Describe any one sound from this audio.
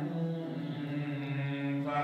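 An elderly man chants into a microphone.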